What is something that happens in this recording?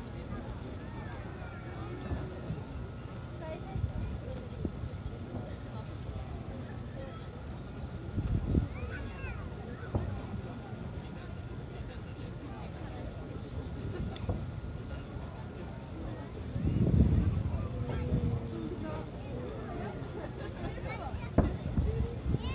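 Fireworks boom in the distance.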